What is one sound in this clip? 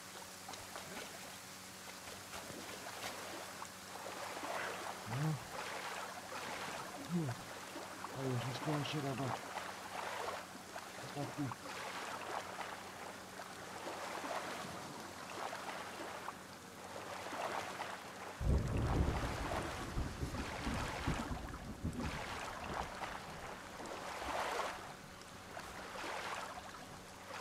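Grass rustles as someone crawls through it.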